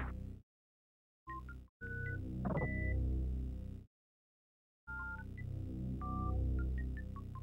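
Electronic game music plays in short bursts with pauses.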